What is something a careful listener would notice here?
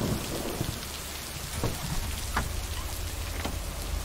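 A truck door opens and slams shut.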